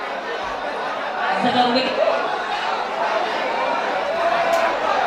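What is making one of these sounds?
A large crowd chatters throughout.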